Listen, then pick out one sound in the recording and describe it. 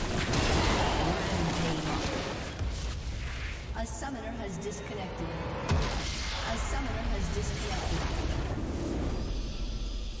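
Game battle effects crackle and boom in quick bursts.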